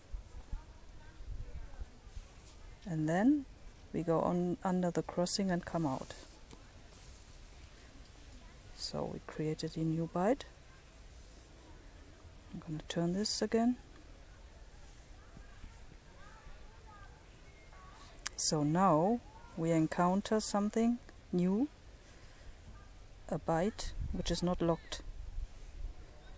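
A cord rustles softly as it is pulled through a knot.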